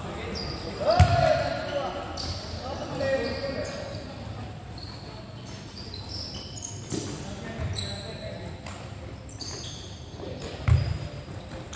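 A ball thumps when kicked and hits the netting.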